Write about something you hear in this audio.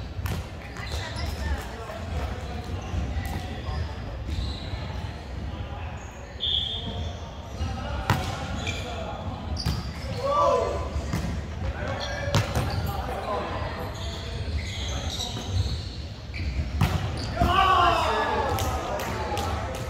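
A volleyball thumps off players' arms and hands, echoing in a large hall.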